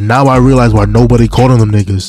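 A young man speaks loudly into a microphone.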